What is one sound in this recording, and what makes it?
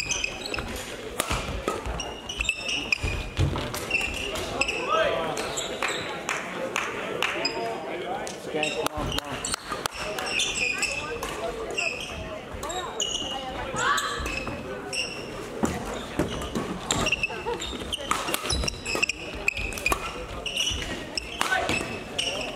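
Shoes squeak on a hall floor, echoing in a large hall.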